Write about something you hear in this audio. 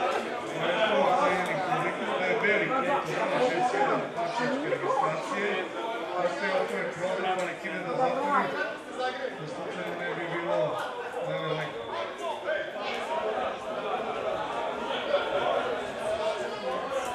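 Men on a playing field shout and call out to one another outdoors.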